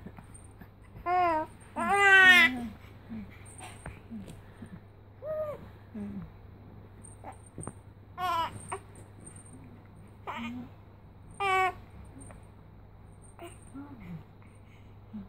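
A baby coos and squeals up close in short bursts.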